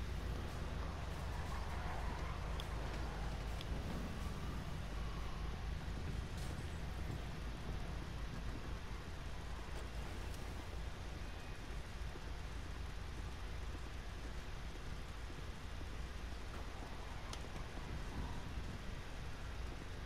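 Footsteps walk across pavement.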